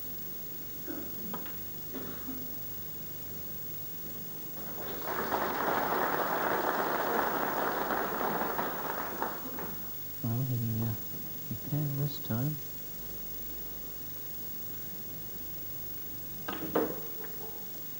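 Snooker balls click against each other.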